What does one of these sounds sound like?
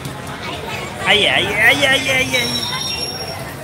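A small child cries out.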